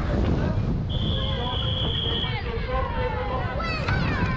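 A crowd cheers at the roadside.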